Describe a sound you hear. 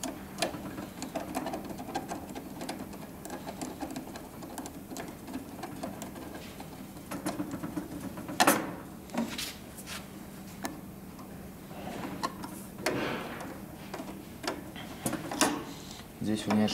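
A screwdriver scrapes and clicks as it turns small screws.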